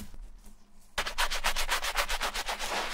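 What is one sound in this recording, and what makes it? A stiff brush scrubs rapidly against a foam insole.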